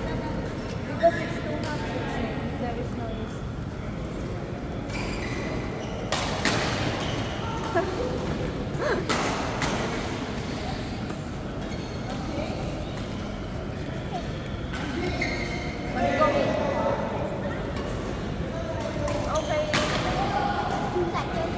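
Rackets hit a shuttlecock with sharp pops in a large echoing hall.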